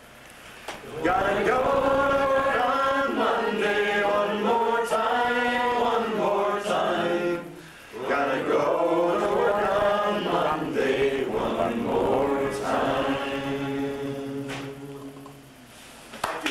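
A man sings close by.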